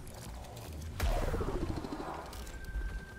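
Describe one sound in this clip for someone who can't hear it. A swooping electronic whoosh sweeps down in pitch.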